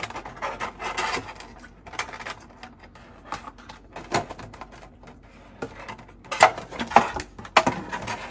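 Small plastic toys tap and clack as they are picked up and set down.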